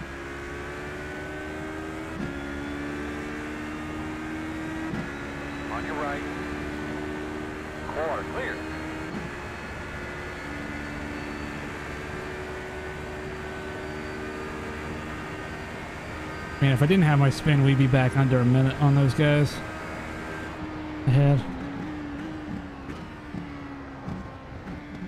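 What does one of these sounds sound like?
A racing car engine whines steadily, rising in pitch and dropping sharply as gears shift.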